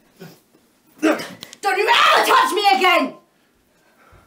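A young man shouts loudly up close.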